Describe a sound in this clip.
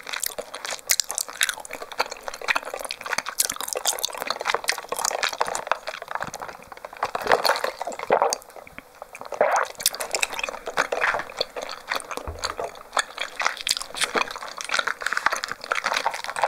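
Plastic cups rustle and tap as they are handled close to a microphone.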